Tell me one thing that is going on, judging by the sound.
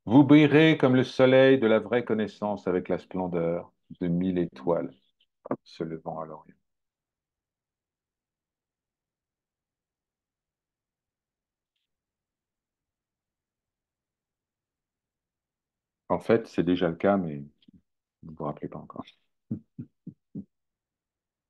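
A man speaks calmly over an online call, pausing between phrases.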